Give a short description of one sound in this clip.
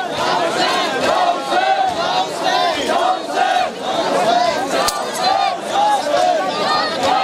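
Men beat their bare chests with their hands in rhythm.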